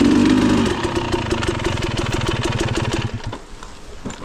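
A dirt bike engine idles and rumbles close by.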